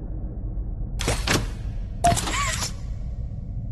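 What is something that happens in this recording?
A grabber hand shoots out on its cable with a whoosh.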